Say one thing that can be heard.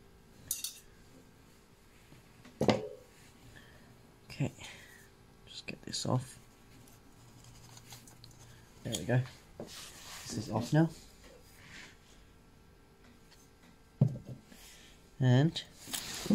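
Metal parts clink and knock against each other on a hard surface.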